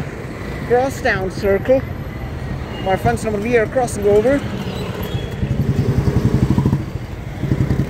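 An auto-rickshaw engine putters close by.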